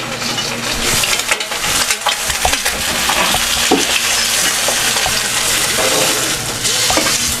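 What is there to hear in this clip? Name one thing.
Eggs sizzle and crackle in a hot frying pan.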